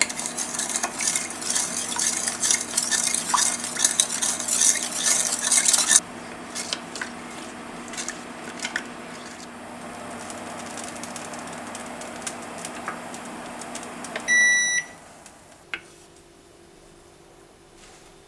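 A wooden spoon scrapes gently in a pan.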